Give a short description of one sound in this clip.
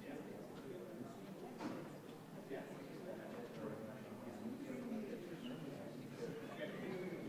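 A seated audience murmurs and chats quietly.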